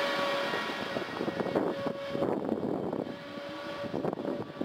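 A train rolls slowly in with rattling wheels and squealing brakes.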